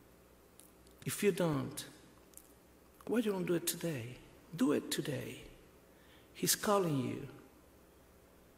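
A man speaks slowly and solemnly through a microphone in a large echoing hall, with long pauses.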